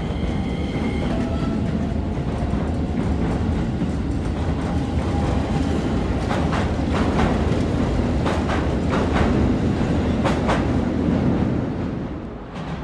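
A commuter train rumbles past close by.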